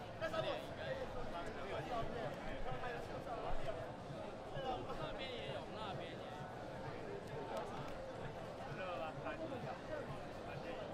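A large crowd chatters and talks in a big echoing hall.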